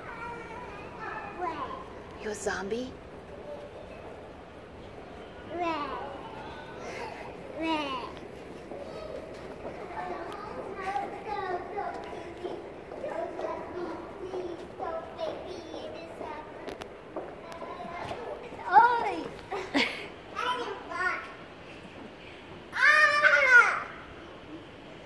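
A toddler girl babbles and squeals nearby.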